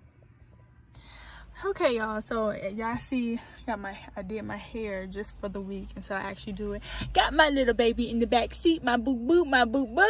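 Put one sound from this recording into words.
A young woman talks with animation, close to the microphone.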